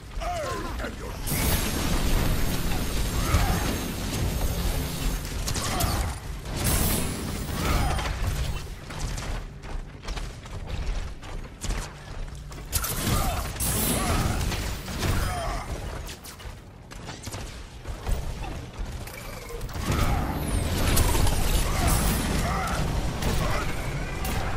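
Guns fire in rapid bursts with explosions in a video game.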